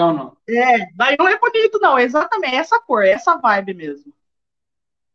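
A young woman laughs and talks over an online call.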